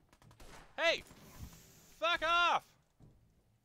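A gun fires in loud sharp bursts.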